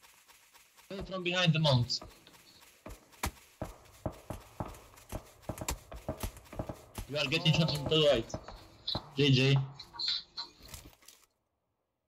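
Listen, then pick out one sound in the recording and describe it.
Footsteps crunch quickly over dry sandy ground.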